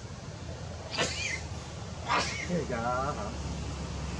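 A baby monkey squeals shrilly a few times.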